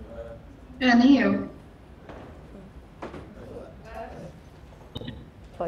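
A woman speaks through an online call, heard over a loudspeaker.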